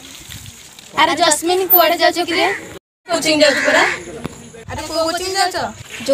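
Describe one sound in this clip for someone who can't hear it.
A group of teenage girls and boys speak loudly together close by.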